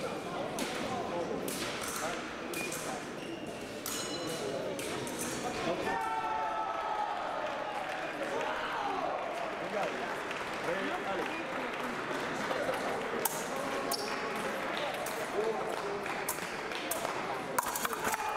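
Fencers' feet tap and slide quickly on the floor.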